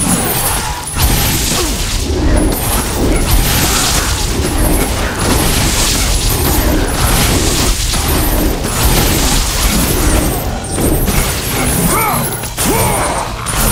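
Blows strike enemies with crunching thuds.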